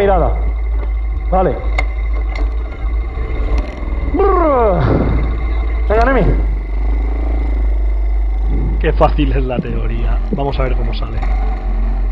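A small motorcycle engine revs up and down sharply, close by.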